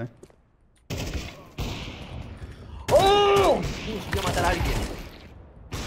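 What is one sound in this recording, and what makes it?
A rifle fires a loud burst of shots.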